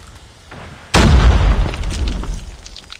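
Rapid gunfire bursts out loudly close by.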